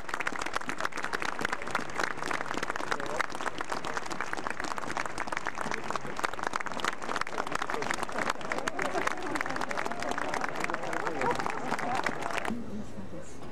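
A crowd applauds steadily outdoors.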